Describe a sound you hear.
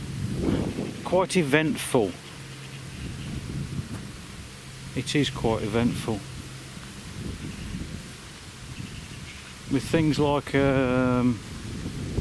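A middle-aged man speaks calmly close by, in short bursts with pauses.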